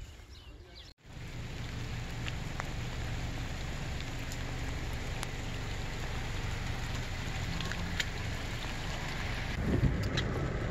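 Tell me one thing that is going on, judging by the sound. Rain pours down steadily outdoors.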